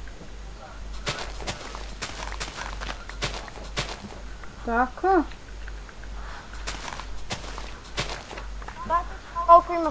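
A shovel digs into dirt with quick, crunchy thuds.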